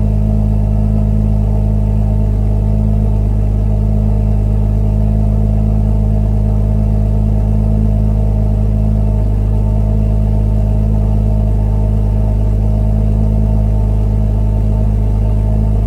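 A car engine idles with a deep, steady rumble from the exhaust close by.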